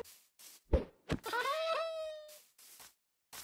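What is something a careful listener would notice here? A game cat meows.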